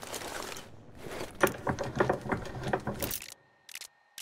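Metal clanks and rattles as a vise is handled.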